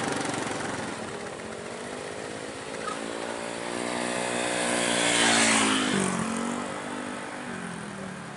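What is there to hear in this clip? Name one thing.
A motorbike engine approaches, roars past close by and fades.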